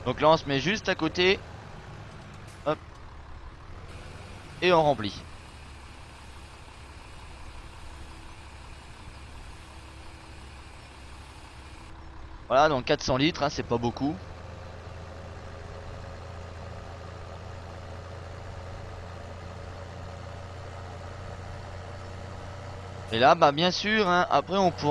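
A tractor engine hums steadily and grows louder as the tractor drives off.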